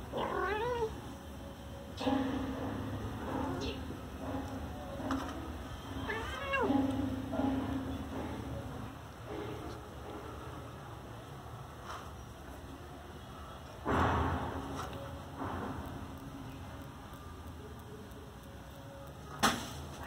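Kittens and a cat scuffle and paw at each other on a tile floor.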